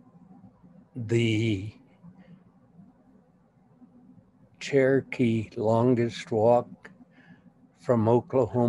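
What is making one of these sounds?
An elderly woman speaks slowly over an online call.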